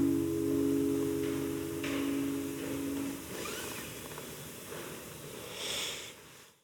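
An acoustic guitar is played softly, its plucked notes ringing in a reverberant room.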